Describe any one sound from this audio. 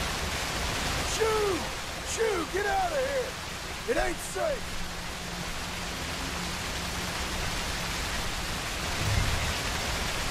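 Water splashes as someone wades through a river.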